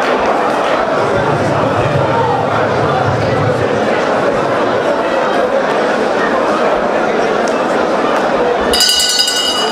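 A crowd of women sing loudly together.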